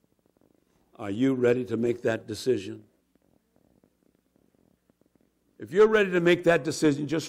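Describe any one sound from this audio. A man speaks into a microphone, heard through loudspeakers in a large echoing hall.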